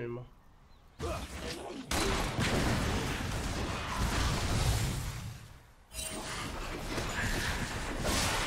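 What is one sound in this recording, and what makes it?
Video game combat effects clash and burst loudly.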